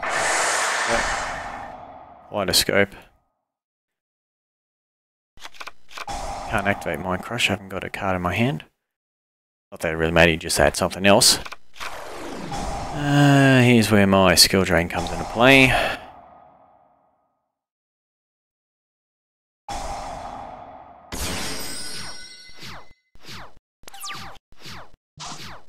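Electronic game sound effects whoosh and chime.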